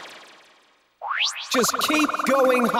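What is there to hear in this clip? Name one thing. Electronic game music plays.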